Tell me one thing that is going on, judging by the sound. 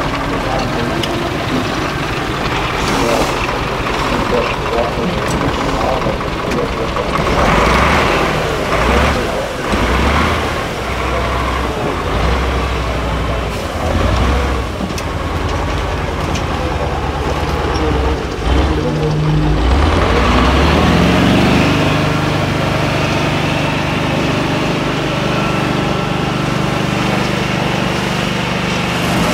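A heavy truck engine roars and revs hard.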